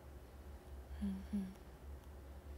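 A young woman makes a short, soft voiced sound close to a microphone.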